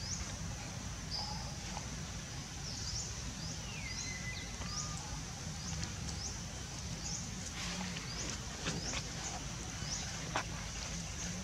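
A baby monkey squeaks in short high chirps.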